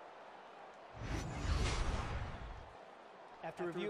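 A loud whoosh sweeps past.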